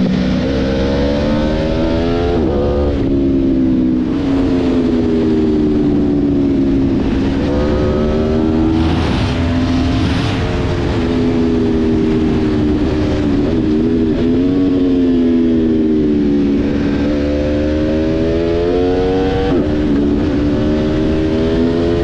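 A motorcycle engine hums steadily, rising and falling in pitch as it shifts gears.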